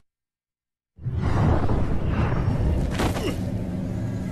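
A fiery portal roars and whooshes.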